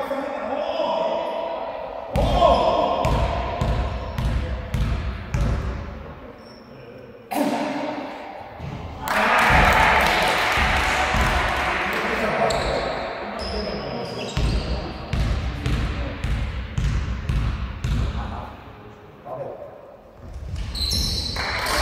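Girls shout and call out to one another in an echoing hall.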